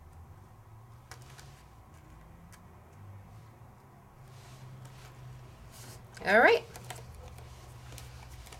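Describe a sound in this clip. A stiff card rustles and taps softly as hands handle it.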